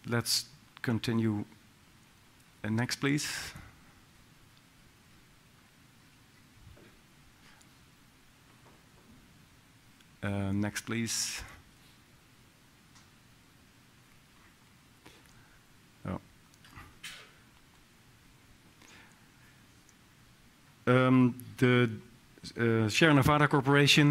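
A man speaks calmly into a headset microphone in a large hall, with pauses between phrases.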